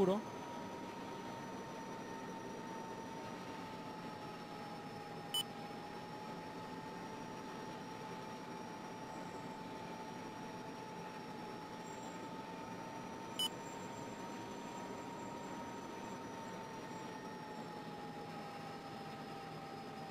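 A jet engine whines steadily at idle.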